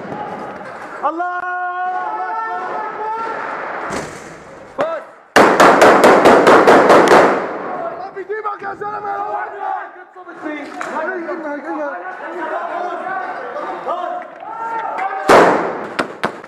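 Men shout nearby.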